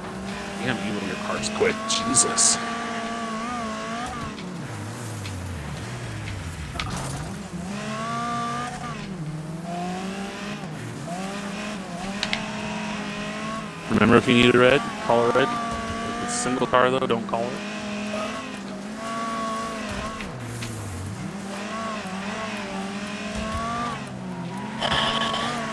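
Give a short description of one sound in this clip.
A racing car engine revs and whines, rising and falling as gears change.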